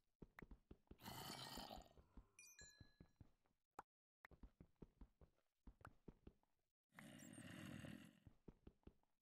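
Stone blocks crumble and break with a crunch.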